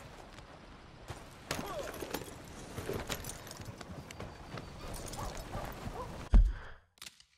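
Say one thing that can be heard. A horse's hooves clop along a dirt trail.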